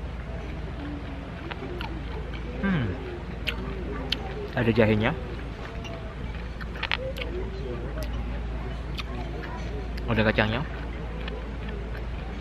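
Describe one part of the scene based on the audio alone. A young man chews food with his mouth closed.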